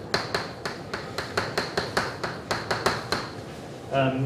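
Chalk taps and scrapes rapidly on a blackboard.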